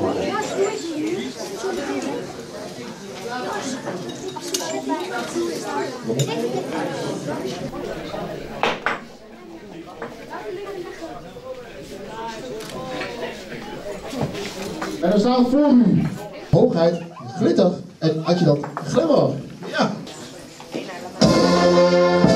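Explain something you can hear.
A crowd chatters and murmurs in a room.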